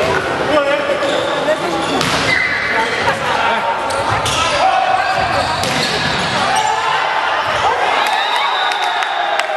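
Players shout and call to each other.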